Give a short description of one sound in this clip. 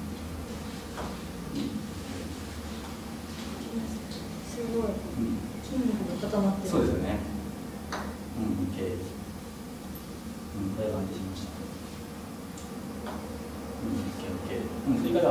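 A golf putter taps a ball.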